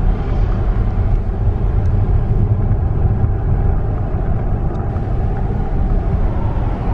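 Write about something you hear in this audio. A car drives along a road with a steady low rumble of tyres and engine.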